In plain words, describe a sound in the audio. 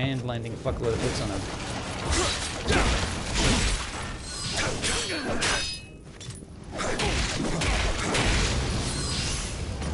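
Sword blows clash and strike in a fight.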